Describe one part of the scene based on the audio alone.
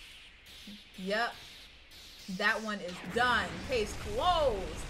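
A young woman exclaims and squeals excitedly, close to a microphone.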